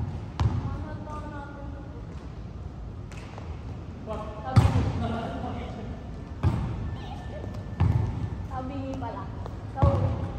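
A young woman talks at a distance in an echoing hall.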